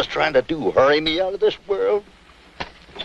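A man speaks weakly and hoarsely, close by.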